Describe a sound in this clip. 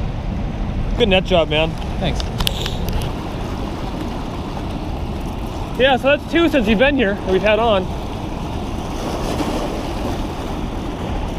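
Water rushes and splashes steadily nearby.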